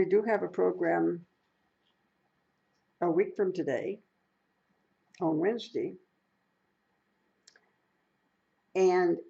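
An elderly woman speaks calmly and close by, in short phrases with pauses.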